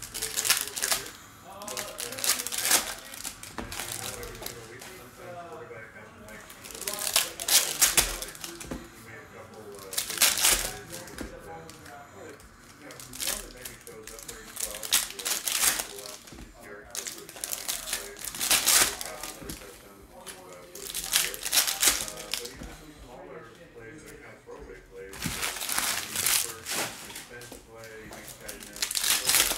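Foil card packs crinkle and tear as hands rip them open.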